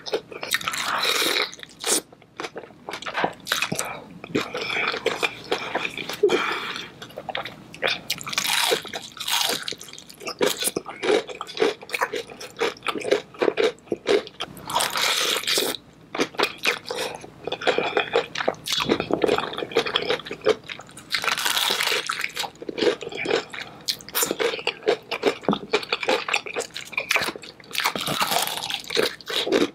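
A woman chews and smacks her lips wetly, close up.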